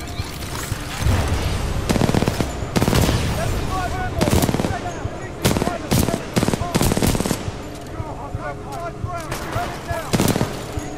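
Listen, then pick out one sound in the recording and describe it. Gunfire rattles in loud rapid bursts.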